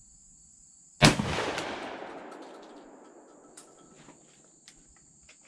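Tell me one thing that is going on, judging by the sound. A rifle fires a single loud shot that echoes away outdoors.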